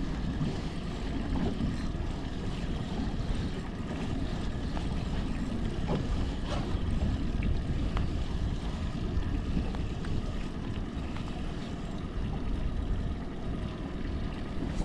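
Small waves lap against a boat.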